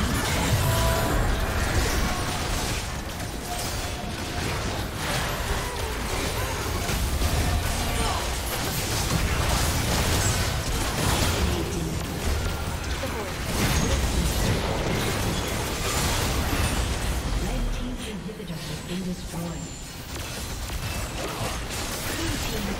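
Spell effects whoosh and crash during a fast battle.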